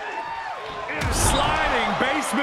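A body slams down onto a wrestling ring mat with a heavy thud.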